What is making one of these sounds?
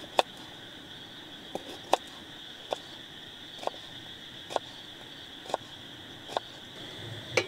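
A knife slices through a raw potato with soft, regular clicks.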